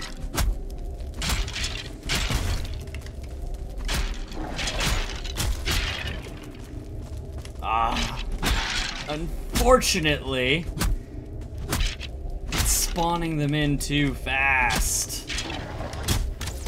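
Sharp game weapon strikes and thuds come in quick bursts.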